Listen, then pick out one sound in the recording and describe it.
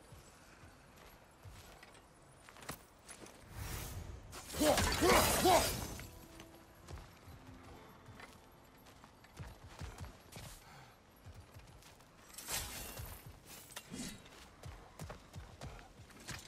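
Heavy footsteps tread on soft ground.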